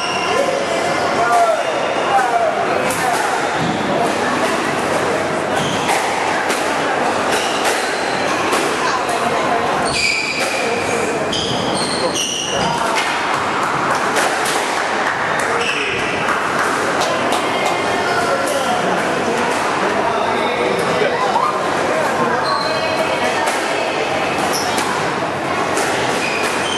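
A squash ball smacks hard against walls, echoing in a large hall.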